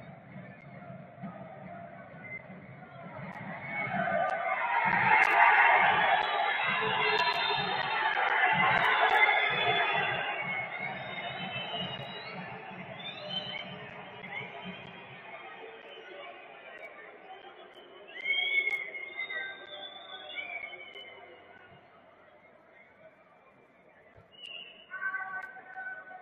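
A large stadium crowd roars, swelling loudly and then dying down.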